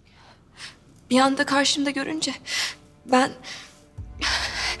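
A young woman speaks tearfully, close by.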